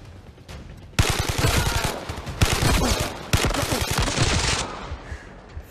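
An assault rifle fires rapid shots.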